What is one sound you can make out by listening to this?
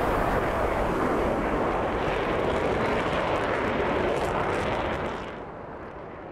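Wind rushes loudly past at high speed.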